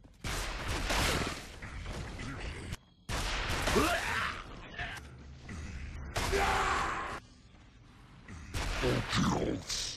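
Gunfire crackles in loud bursts.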